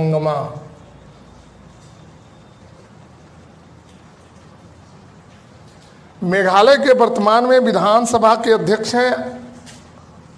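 A middle-aged man speaks clearly and at a steady pace, close to a microphone.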